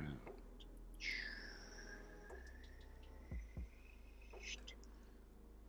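A felt-tip marker squeaks across paper.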